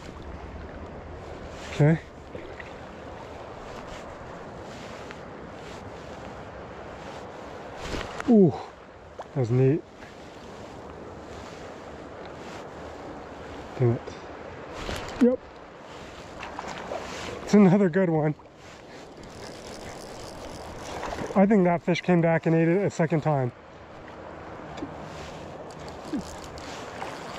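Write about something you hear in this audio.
A shallow river flows and ripples steadily.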